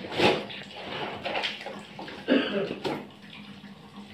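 Water splashes in a bucket as clothes are washed by hand.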